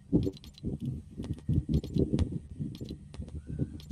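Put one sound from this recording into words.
Soft interface clicks tick as menu items are selected.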